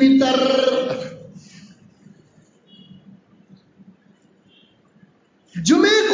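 A man preaches with feeling into a microphone, his voice carried over a loudspeaker.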